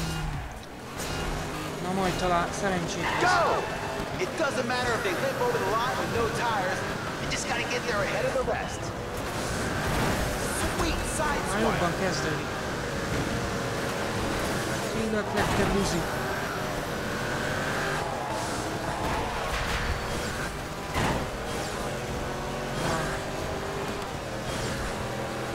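A car engine roars and revs up and down at high speed.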